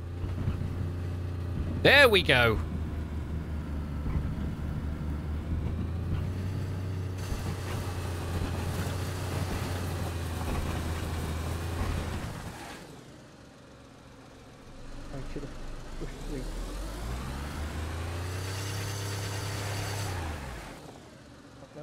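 A car engine rumbles and revs up and down.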